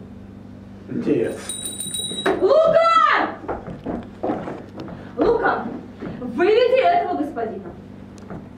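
A woman speaks with feeling, in a room that echoes a little.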